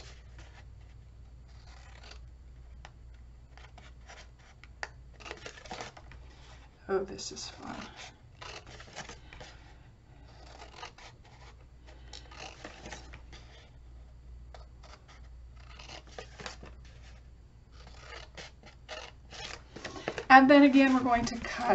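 Paper crinkles and rustles as it is handled.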